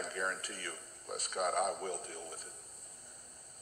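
A middle-aged man speaks slowly and seriously into a microphone in an echoing room.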